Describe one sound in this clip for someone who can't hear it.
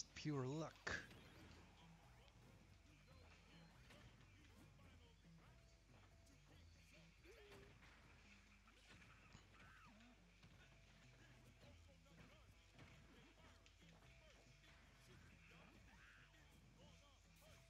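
Electronic game sound effects pop and chime.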